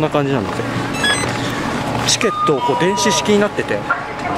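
A ski lift gate beeps.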